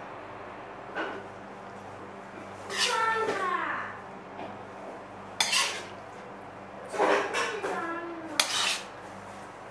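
A metal spoon clinks against a ceramic bowl.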